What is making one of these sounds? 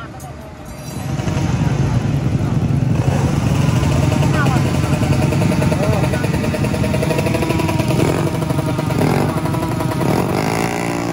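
A small motorcycle engine revs loudly and crackles.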